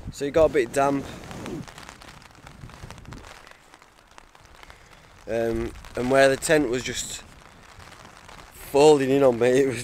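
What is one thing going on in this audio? A young man speaks quietly and wearily, close by.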